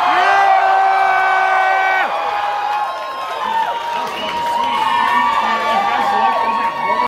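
A band plays loud live music with guitars through loudspeakers in a large echoing hall.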